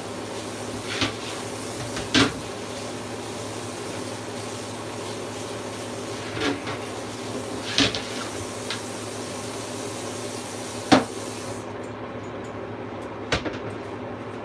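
Dishes clink and knock in a sink.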